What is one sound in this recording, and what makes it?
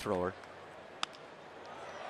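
A bat cracks against a baseball.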